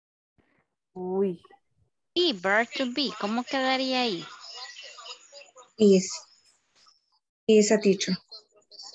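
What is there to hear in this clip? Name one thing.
A woman speaks in short phrases over an online call.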